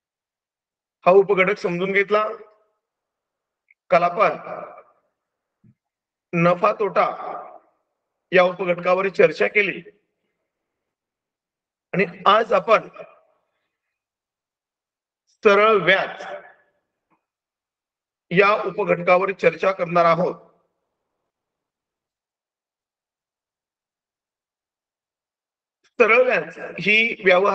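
A middle-aged man speaks calmly in short phrases with pauses, heard through an online call.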